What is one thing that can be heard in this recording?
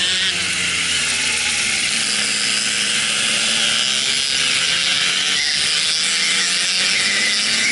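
Other kart engines whine nearby.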